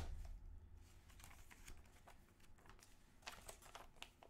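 A plastic wrapper crackles as hands pick at a game case.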